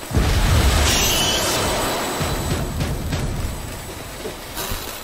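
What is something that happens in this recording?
A magical blast booms and crackles, then slowly fades.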